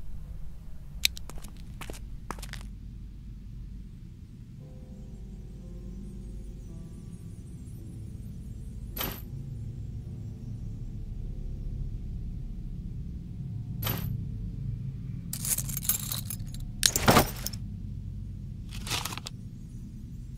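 Short game chimes and swishes sound now and then.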